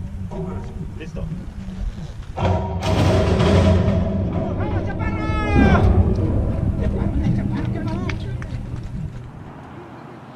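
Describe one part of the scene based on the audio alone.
Horses shuffle and bang inside metal starting stalls.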